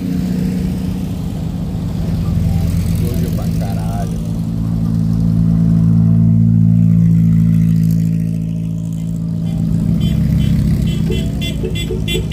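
Engines of off-road buggies drone steadily as they pass one after another.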